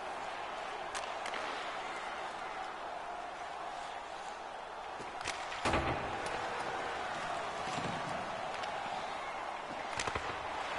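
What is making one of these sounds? Hockey sticks click against a puck on ice.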